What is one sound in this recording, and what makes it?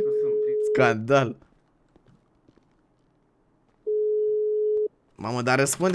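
A phone ringing tone sounds in long, steady beeps.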